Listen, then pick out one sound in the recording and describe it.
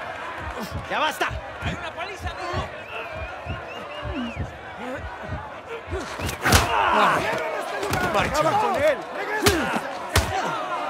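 Punches thud against a body.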